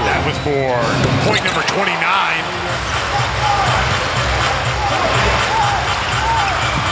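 A large crowd roars and cheers in a big echoing arena.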